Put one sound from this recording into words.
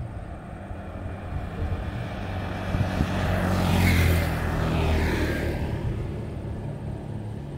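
Motorcycles approach, pass close by with engines buzzing, and fade away.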